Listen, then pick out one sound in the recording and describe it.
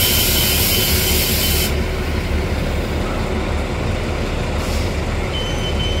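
A bus drives past on the street.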